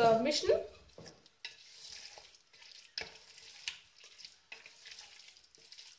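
A wooden spoon stirs and scrapes food in a metal pot.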